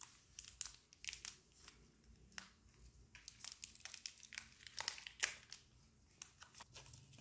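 A candy bar wrapper crinkles and rustles as hands tear it open.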